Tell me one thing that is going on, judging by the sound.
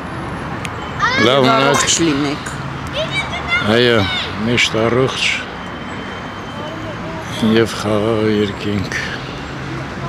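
Adult men and women chat casually nearby outdoors.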